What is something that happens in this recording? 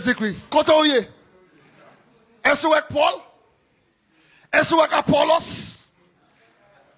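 A man speaks with animation into a microphone, heard through loudspeakers in an echoing room.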